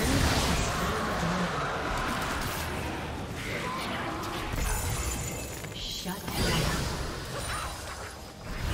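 Game sound effects clash and whoosh during a fight.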